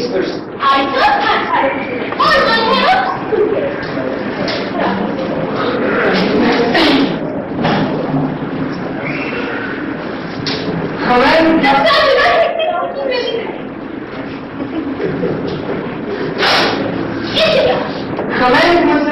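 A middle-aged woman speaks loudly and with animation, heard from a distance in an echoing room.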